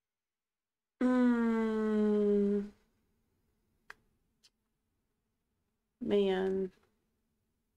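A woman hums a long, drawn-out note into a microphone.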